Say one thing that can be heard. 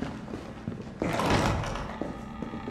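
A swinging door is pushed open.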